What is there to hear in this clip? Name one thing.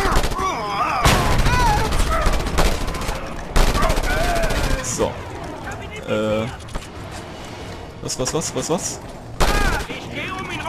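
Automatic gunfire rattles in short bursts.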